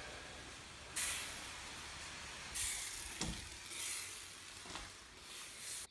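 A hand pump sprayer hisses in short bursts.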